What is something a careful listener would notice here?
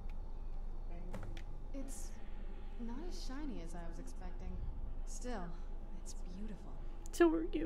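A woman's voice speaks calmly through a game's sound.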